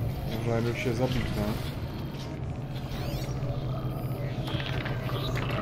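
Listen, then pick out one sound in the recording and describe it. Electronic zaps and whooshes of game effects sound.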